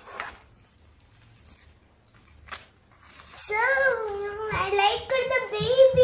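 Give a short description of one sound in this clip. Plastic packaging crinkles in a young girl's hands.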